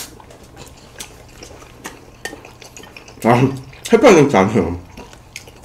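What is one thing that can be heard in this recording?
A young man chews food close to a microphone.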